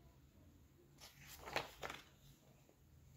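Book pages rustle briefly.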